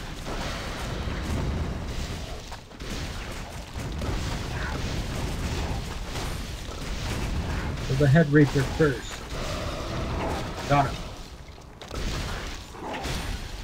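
Fantasy game battle effects crackle and whoosh steadily.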